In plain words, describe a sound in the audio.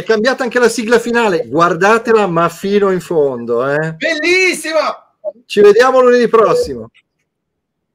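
A man talks with animation over an online call.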